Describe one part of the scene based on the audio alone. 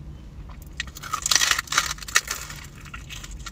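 A man bites into crispy food.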